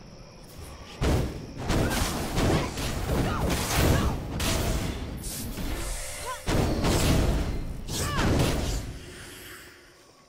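Game combat effects whoosh and crackle loudly.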